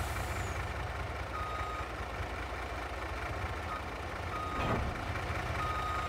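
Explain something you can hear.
Metal vehicles crash and clatter as they tumble.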